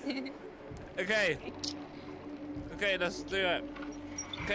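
A metal crank squeaks as it is turned.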